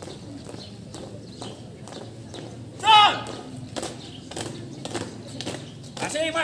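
Several people march in step, their shoes tapping on a hard court.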